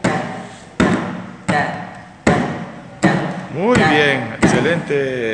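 A hand drum is struck with open palms in a slow, steady beat.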